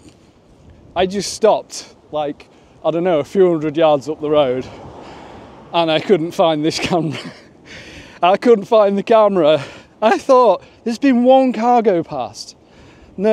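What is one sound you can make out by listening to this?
A man talks with animation close to a clip-on microphone.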